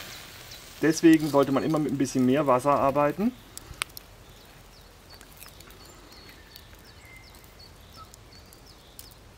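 A small campfire crackles softly.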